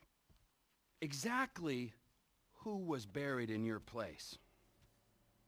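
A man speaks loudly and emphatically, close by.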